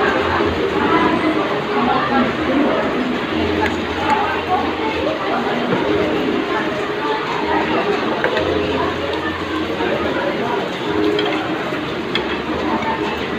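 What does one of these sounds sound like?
Metal cutlery clinks and scrapes against plates.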